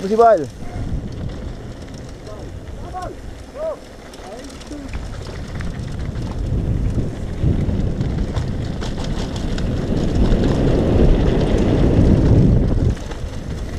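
Wind rushes past the microphone, growing louder with speed.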